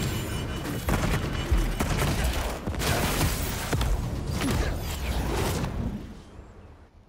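Loud explosions boom and roar.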